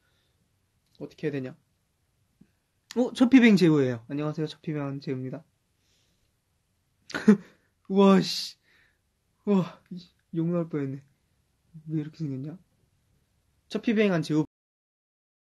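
A young man talks casually and close by, in short bursts.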